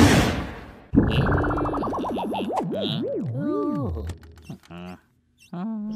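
A cartoon man talks lazily and drawls.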